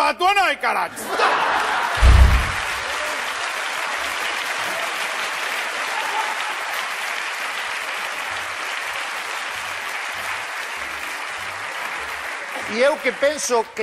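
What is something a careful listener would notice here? A studio audience laughs and applauds.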